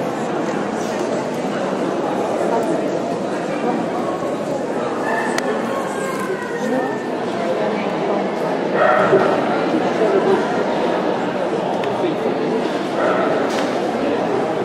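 A crowd of people murmurs and chats in a large echoing hall.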